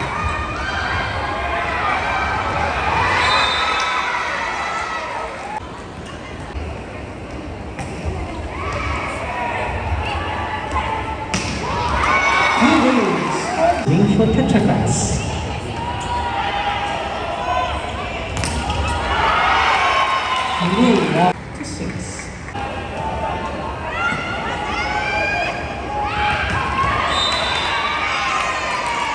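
A crowd cheers and chants loudly in a large echoing hall.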